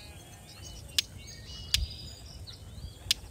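Soft game clicks sound as menu buttons are tapped.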